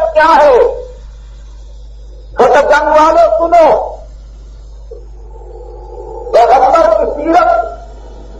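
A middle-aged man chants melodically close to a microphone, in phrases separated by pauses.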